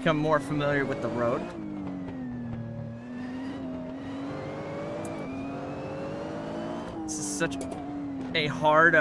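A racing car engine revs up and down through the corners.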